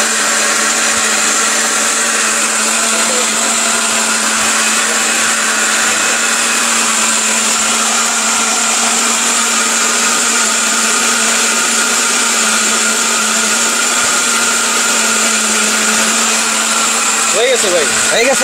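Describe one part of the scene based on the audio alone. A blender whirs loudly and steadily, grinding a thick mixture, then stops.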